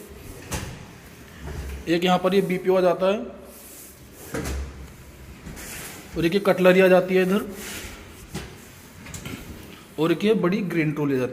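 A drawer with a metal rack slides open on its runners.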